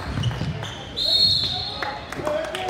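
A referee blows a short, shrill whistle.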